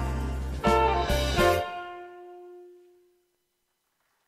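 A saxophone plays a loud melody and its last note fades away in an echoing room.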